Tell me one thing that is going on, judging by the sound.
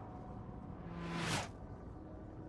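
A spaceship whooshes past.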